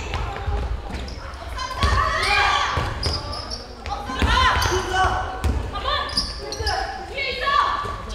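A basketball thuds against the floor and hands.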